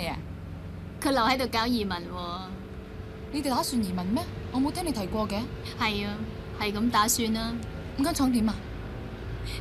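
A second woman speaks quietly in reply.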